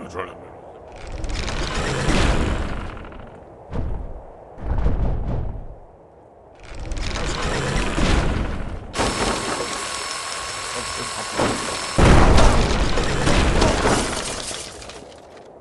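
A wooden trebuchet swings and hurls a stone.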